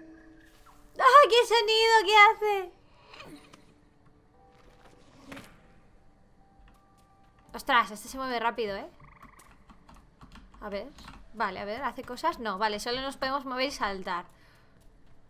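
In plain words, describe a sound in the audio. A young woman talks animatedly and close to a microphone.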